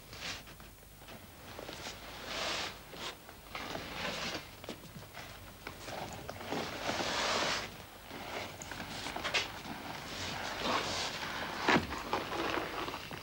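A man speaks quietly and intently, close by.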